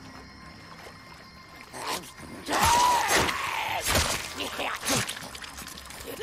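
A creature growls and snarls up close.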